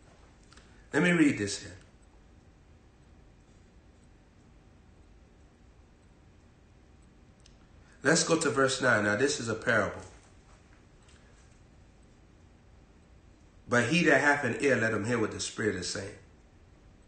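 A young man reads aloud calmly in short bursts, close to a microphone.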